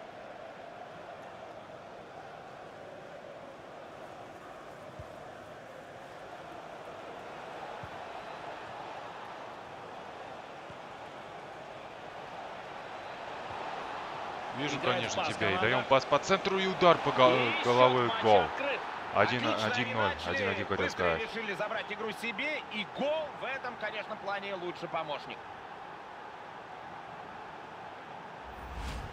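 A large stadium crowd murmurs and hums steadily.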